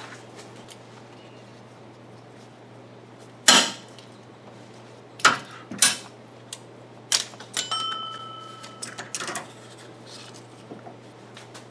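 A metal wrench clinks and clicks against engine parts.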